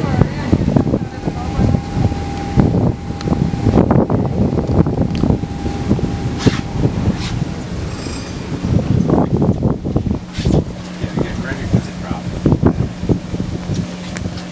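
A boat engine hums steadily nearby.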